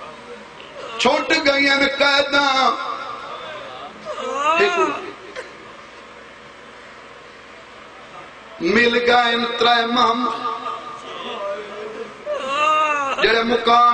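A young man chants loudly and melodically into a microphone, heard through a loudspeaker, in long sung phrases.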